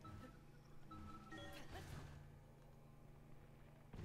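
A magical shimmering whoosh swells and fades.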